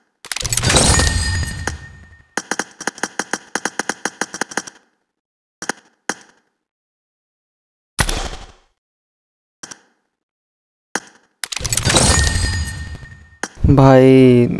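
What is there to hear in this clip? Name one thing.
A game reward sound bursts out with a bright shimmer.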